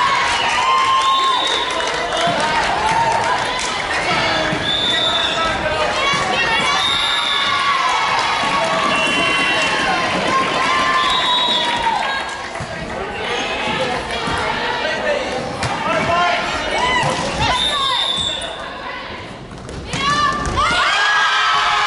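Young women chatter and call out in a large echoing hall.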